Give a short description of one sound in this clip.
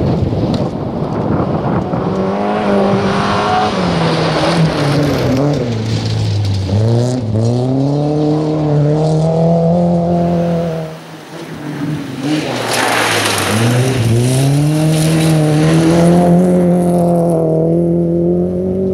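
A rally car engine roars and revs hard as it passes close by.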